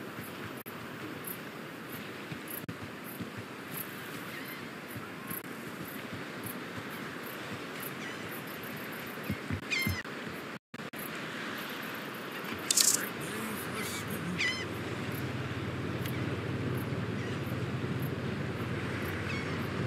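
Waves lap gently at a shore.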